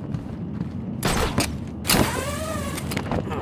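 A grappling hook fires with a sharp whoosh.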